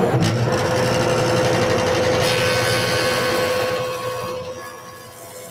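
A jointer's blades plane a board with a loud whirring roar.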